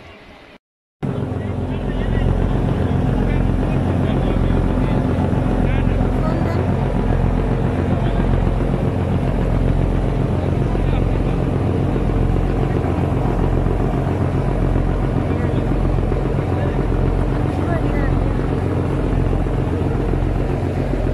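A boat engine drones loudly and steadily.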